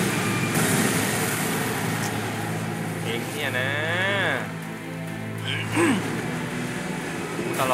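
Water splashes under quick footsteps.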